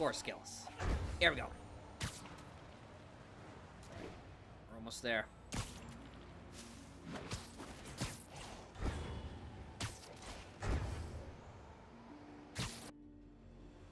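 Webs shoot out with sharp, quick thwips.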